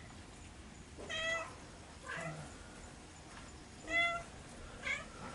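Cats meow loudly nearby, in short drawn-out cries.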